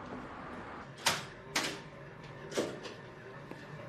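A door handle clicks and a door opens.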